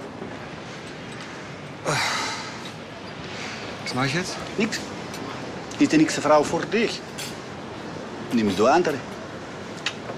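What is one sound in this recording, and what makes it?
A second middle-aged man answers in a low, calm voice, close by.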